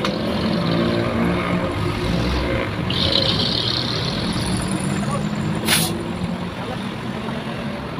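Traffic passes by on a road outdoors.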